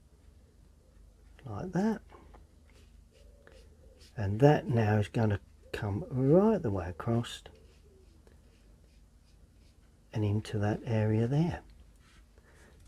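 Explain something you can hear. A brush softly strokes and dabs across paper.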